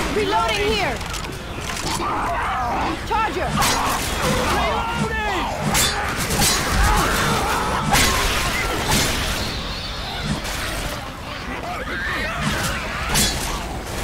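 A creature shrieks and snarls.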